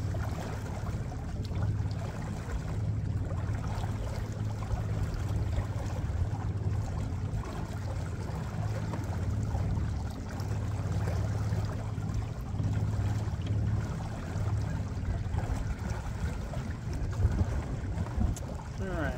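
Water laps softly against a boat's hull.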